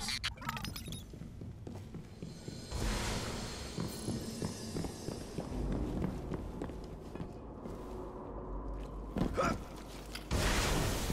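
Footsteps tap steadily on a hard stone floor.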